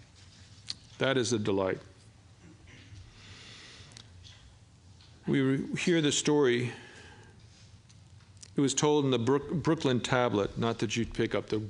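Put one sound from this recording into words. An elderly man speaks calmly into a microphone, pausing between phrases.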